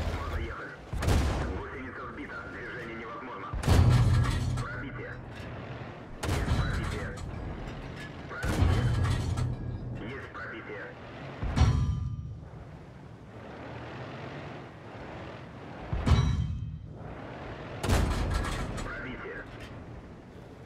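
Tank cannons fire with loud, booming blasts again and again.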